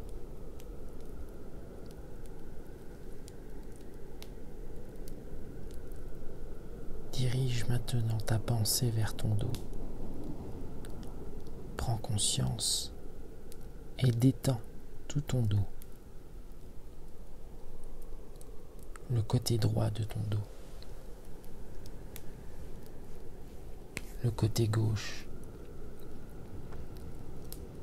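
A wood fire crackles and pops steadily.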